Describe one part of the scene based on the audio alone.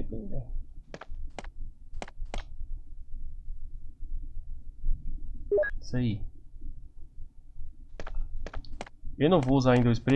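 Footsteps tap on a hard stone floor in a small echoing room.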